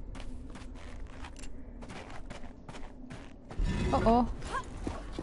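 Quick footsteps run on a hard stone floor with a slight echo.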